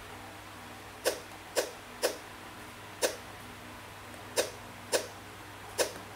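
A tablet game makes short popping sounds as pieces snap into place.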